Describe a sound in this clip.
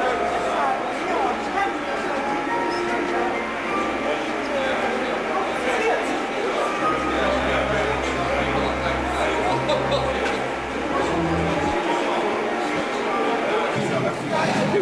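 A crowd of people chatters in a busy room.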